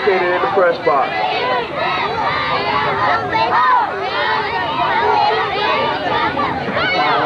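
Many children chatter and call out at once, close by, outdoors.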